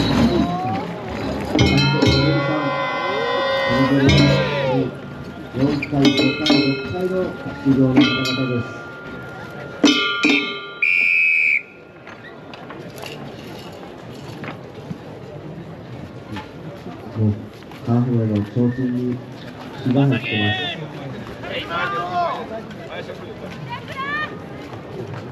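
A group of men chant loudly together close by.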